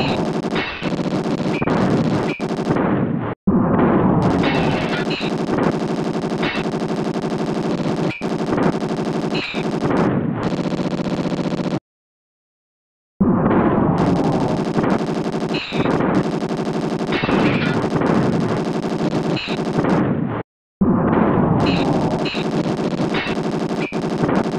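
Gunshots pop repeatedly.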